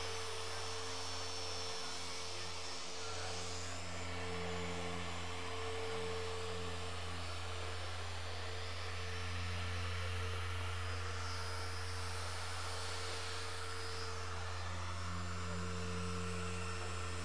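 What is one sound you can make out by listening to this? A power polisher whirs steadily against a car's paint.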